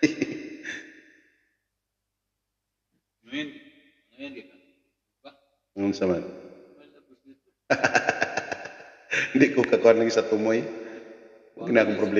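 A middle-aged man sings close to a microphone, in short phrases with pauses.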